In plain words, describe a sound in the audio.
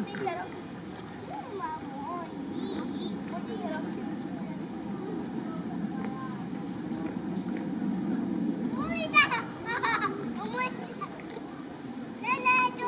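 People chatter nearby outdoors.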